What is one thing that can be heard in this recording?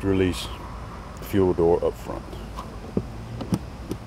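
A fuel filler flap clicks shut under a press of the hand.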